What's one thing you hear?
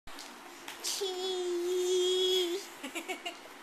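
A toddler squeals in a long, high, steady voice close by.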